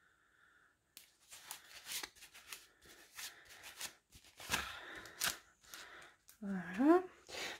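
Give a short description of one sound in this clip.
Plastic packets crinkle and rustle as a hand handles them.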